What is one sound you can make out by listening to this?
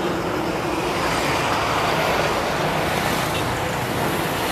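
A heavy truck drives past close by.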